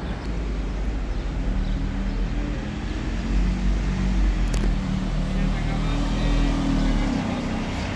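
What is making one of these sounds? A second bus engine hums close by as another bus drives past.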